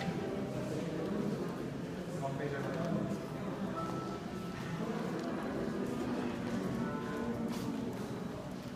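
A crowd of men and women murmur and chat nearby in a large room.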